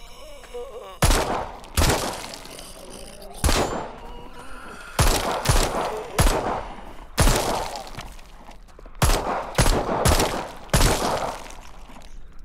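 Gunshots fire in loud bursts and echo off rock walls.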